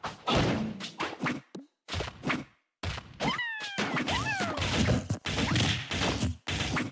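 Punches and blasts thud and whoosh in a fast video game fight.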